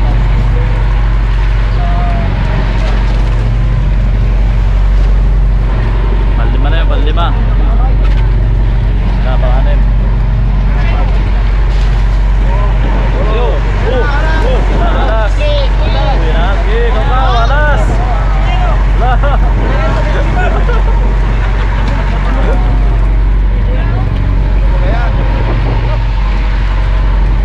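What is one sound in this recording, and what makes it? Fish rustle and slap as they are scooped on a deck.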